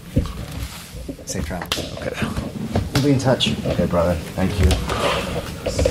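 Several men laugh loudly.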